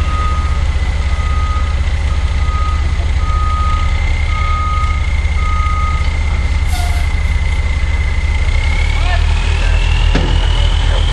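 A large truck engine idles with a deep, steady rumble.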